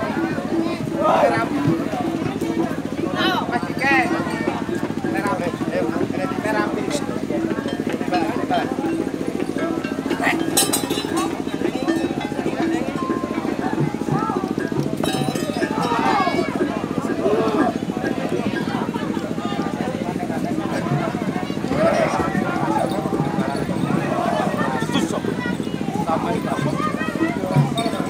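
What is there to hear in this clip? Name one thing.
A crowd of men talks and shouts nearby.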